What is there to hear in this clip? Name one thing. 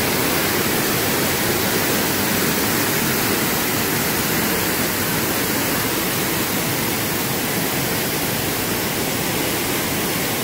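A mountain stream rushes loudly and steadily over rocks close by.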